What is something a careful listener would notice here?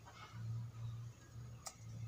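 Pruning shears snip through small branches with sharp clicks.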